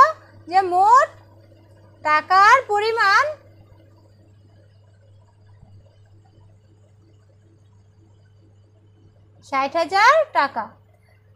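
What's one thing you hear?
A woman speaks in a lively, sing-song way close by.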